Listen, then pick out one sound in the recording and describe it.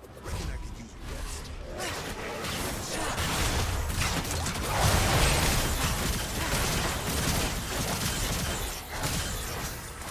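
Magic spell effects whoosh and crackle during a fast video game fight.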